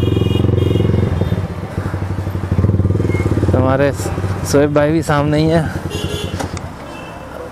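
A motorcycle engine idles with a steady throbbing rumble close by.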